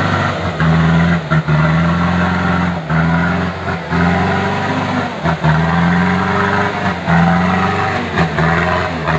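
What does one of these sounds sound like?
Truck tyres spin and churn through thick mud.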